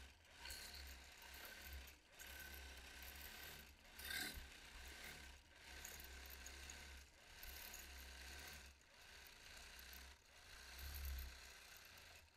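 A quilting machine hums and stitches steadily.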